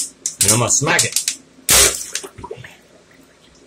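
Water splashes and gurgles into a sink.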